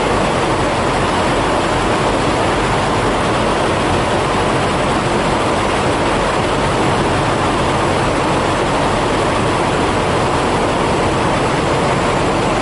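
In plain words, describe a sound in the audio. Truck engines idle with a steady, loud rumble nearby.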